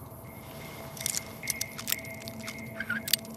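A metal pick scrapes and clicks inside a lock.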